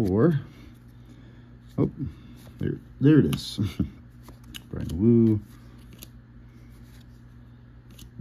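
Trading cards slide and flick softly against one another in a stack.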